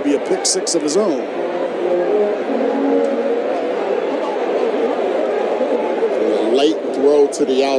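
A large outdoor crowd cheers and shouts from the stands.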